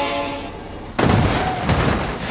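A train crashes into cars with a loud metallic bang.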